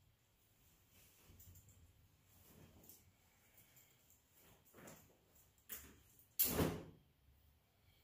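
Fabric rustles as a jacket is taken off.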